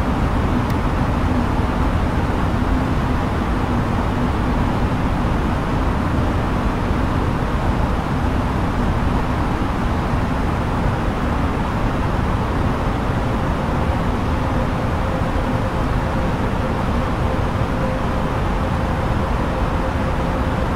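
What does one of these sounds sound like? A jet airliner roars steadily in flight, heard from inside the cockpit.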